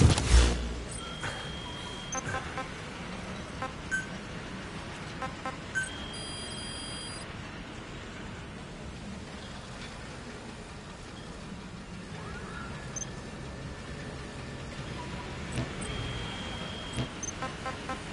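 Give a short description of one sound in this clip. Short electronic menu beeps and clicks sound now and then.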